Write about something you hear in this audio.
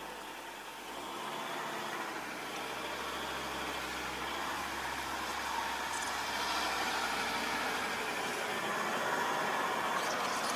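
Wind blows steadily outdoors through low bushes.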